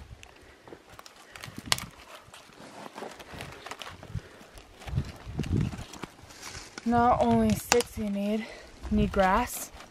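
Dry twigs snap and crack.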